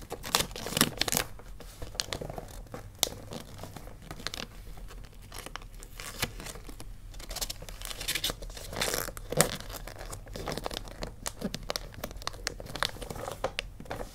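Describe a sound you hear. Fingertips tap and press on a wrapped box.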